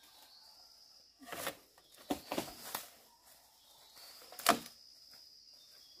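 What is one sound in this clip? A bamboo pole drags through dry leaves.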